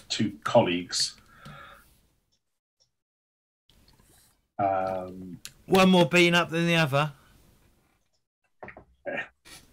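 Several men talk with animation over an online call.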